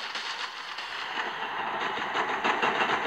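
A toy blaster fires in rapid bursts.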